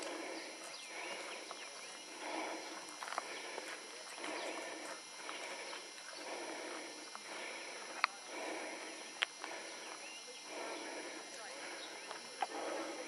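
Footsteps crunch steadily on loose gravel close by.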